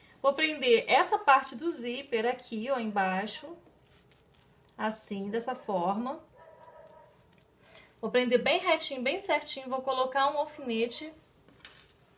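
A woman speaks calmly and close by, explaining.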